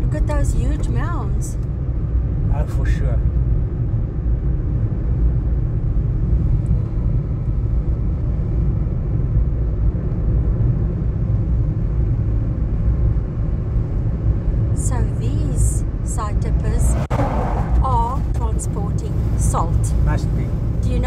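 Tyres rumble steadily on a paved road from inside a moving car.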